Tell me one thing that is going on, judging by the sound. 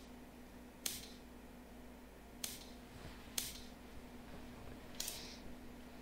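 Wooden game pieces click sharply onto a board a few times.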